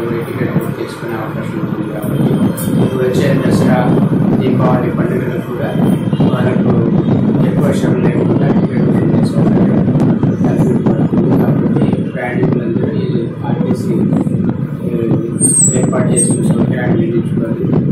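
A middle-aged man speaks calmly and steadily into microphones close by.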